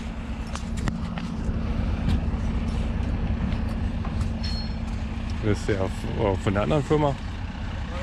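A car engine rumbles steadily nearby.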